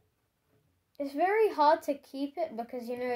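A child speaks with animation close by.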